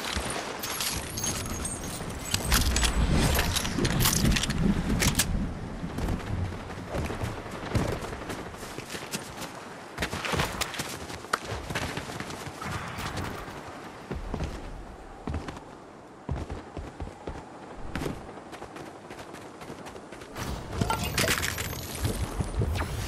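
Items clink as they are picked up.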